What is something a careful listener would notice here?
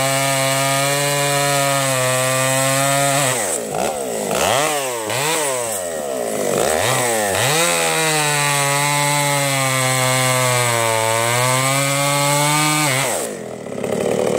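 A chainsaw engine roars loudly close by, revving up and down.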